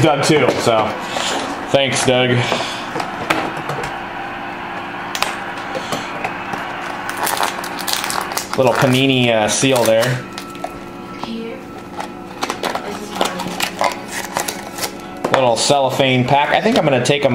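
A foil card pack crinkles as hands tear it open.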